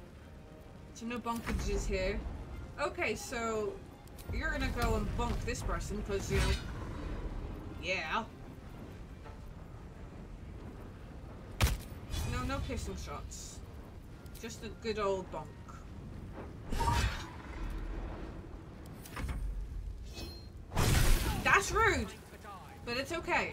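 A woman talks with animation into a microphone, close by.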